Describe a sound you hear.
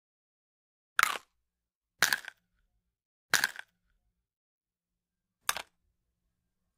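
A cartoon star badge cracks with short, sharp crunching bursts.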